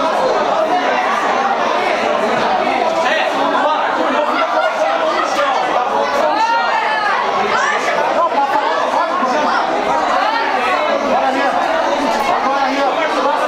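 A crowd of spectators chatters and shouts loudly all around.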